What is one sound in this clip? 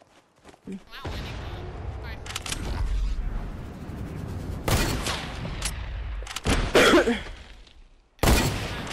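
Video game sound effects whoosh and clatter.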